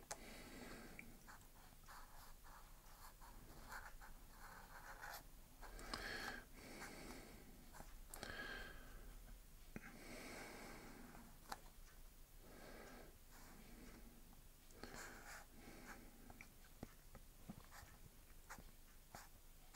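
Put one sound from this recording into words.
A felt-tip pen scratches across paper.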